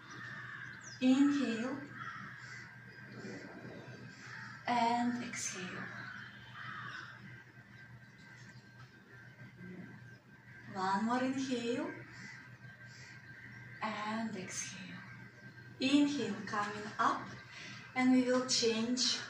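A woman speaks calmly in short phrases, close by in a room.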